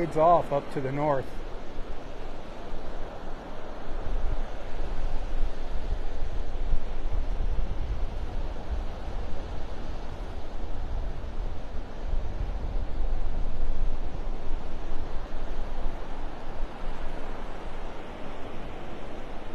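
Waves wash and break steadily onto a beach.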